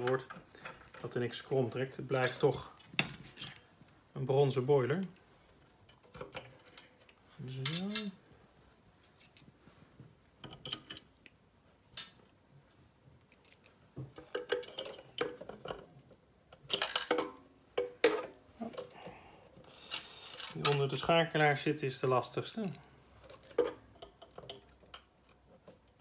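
Small metal parts click and rattle as hands work on a machine.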